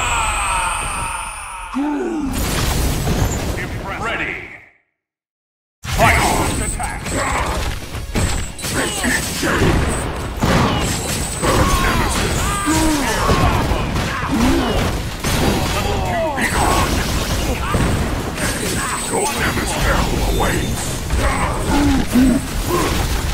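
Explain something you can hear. Energy blasts whoosh and crackle loudly.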